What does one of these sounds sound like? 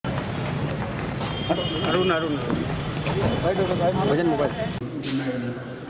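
A crowd of men talk and murmur close by.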